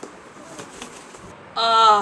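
A plastic bag rustles.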